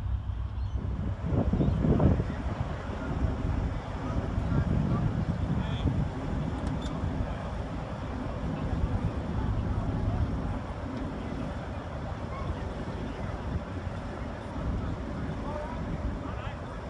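A crowd of men and women chatters in the distance.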